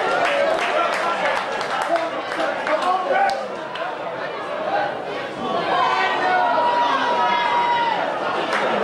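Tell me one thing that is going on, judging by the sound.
A crowd cheers and shouts outdoors in a stadium.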